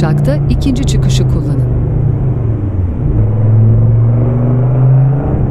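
A car engine hums steadily at low pitch.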